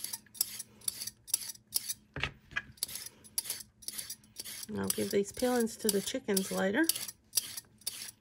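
A peeler scrapes along a carrot in quick, rasping strokes.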